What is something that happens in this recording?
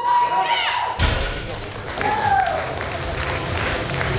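A loaded deadlift barbell thuds down onto a lifting platform.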